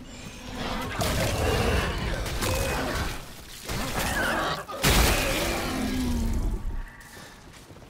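Melee blows strike a creature with heavy, wet thuds.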